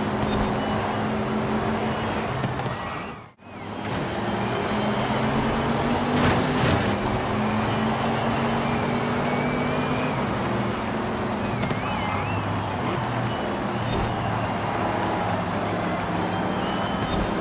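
A car engine hums and revs steadily at speed.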